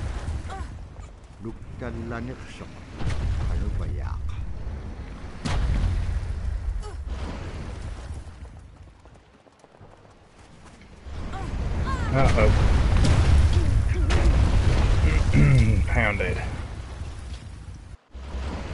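Strong wind roars and gusts.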